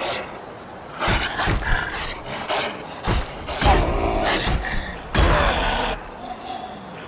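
Wolves snarl and yelp as they are hit.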